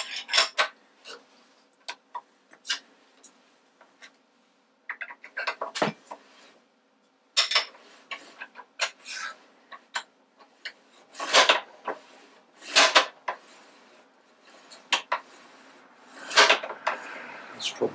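Metal tools clink and knock against a machine.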